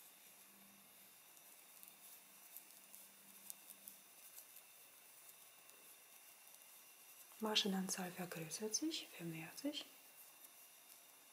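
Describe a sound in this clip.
Knitting needles click softly.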